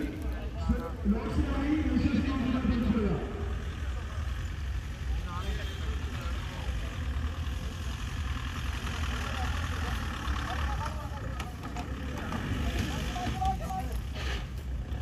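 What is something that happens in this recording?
Men talk and call out nearby.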